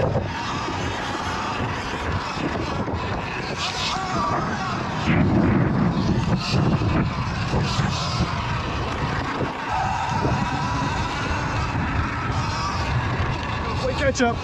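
Wind buffets the rider outdoors.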